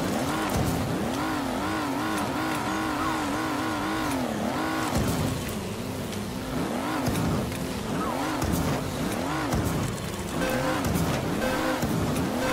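A kart engine revs up and down repeatedly.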